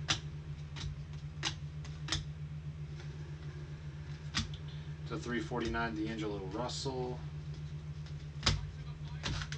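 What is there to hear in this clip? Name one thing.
Trading cards flick and tap as they are shuffled by hand.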